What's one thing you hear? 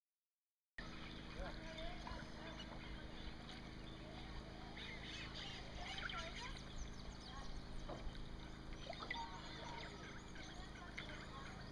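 A paddle dips and swishes through calm water.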